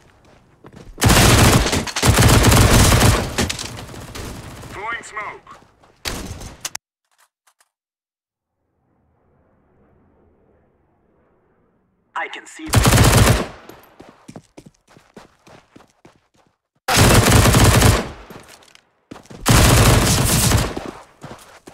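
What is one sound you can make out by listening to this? A submachine gun fires in bursts.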